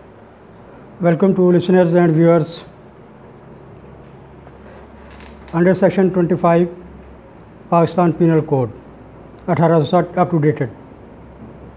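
A middle-aged man speaks calmly and deliberately into a close microphone, in short phrases with pauses.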